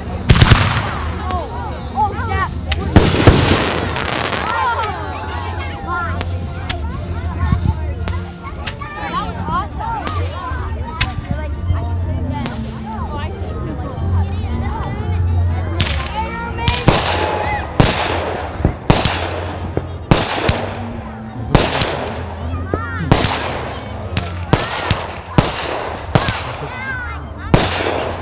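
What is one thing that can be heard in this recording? Rockets whistle and hiss as they shoot upward.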